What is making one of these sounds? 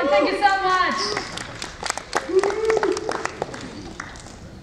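A young woman claps her hands in a large echoing hall.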